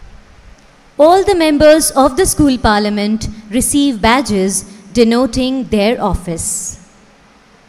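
A girl calls out loudly in a large echoing hall.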